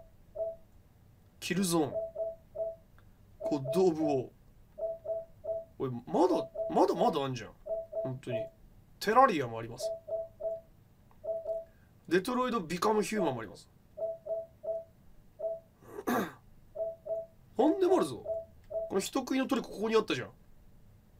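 Short electronic menu ticks sound in quick pairs.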